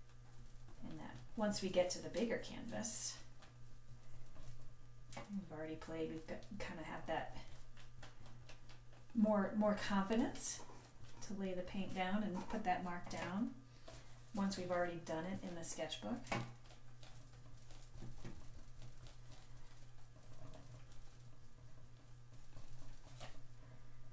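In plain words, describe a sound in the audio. A brush swishes and dabs on paper.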